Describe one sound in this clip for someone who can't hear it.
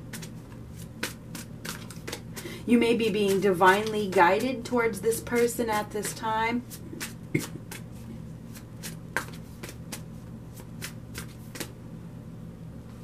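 Cards riffle and tap together as they are shuffled by hand.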